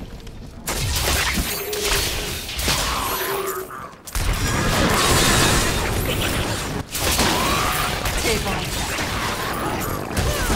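Spell effects crackle and burst in quick succession.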